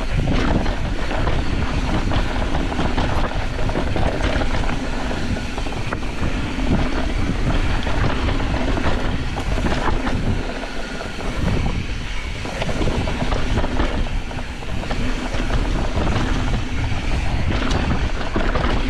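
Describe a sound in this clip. Wind rushes loudly past close by.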